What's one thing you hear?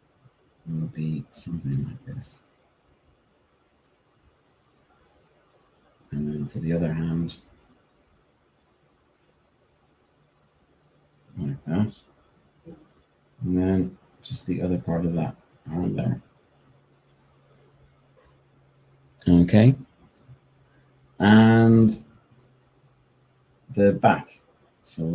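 A man talks calmly and close by, in short phrases with pauses.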